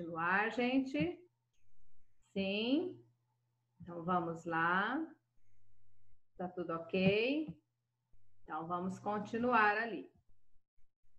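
A middle-aged woman speaks calmly and close to the microphone, in short phrases with pauses.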